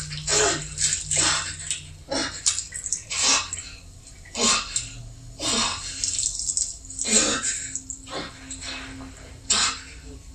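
A man breathes hard in ragged, pained gasps close by.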